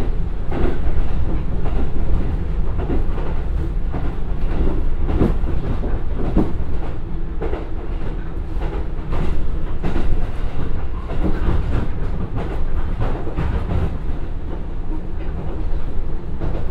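A diesel train engine hums steadily while the train rolls along.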